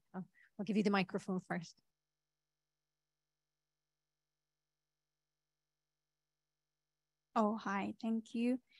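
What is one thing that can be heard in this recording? A woman speaks calmly into a microphone, pausing for several seconds between phrases.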